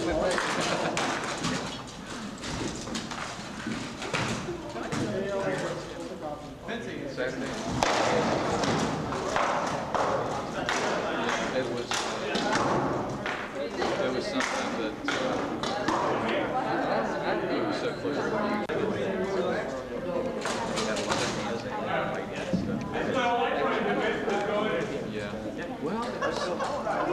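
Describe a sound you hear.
Adult men and women talk nearby in an echoing hall.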